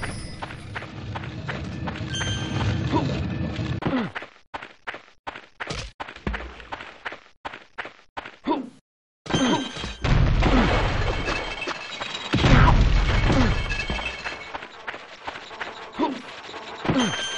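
Footsteps patter quickly on dirt.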